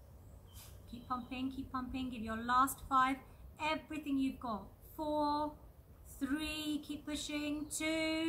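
A young woman speaks calmly and softly nearby.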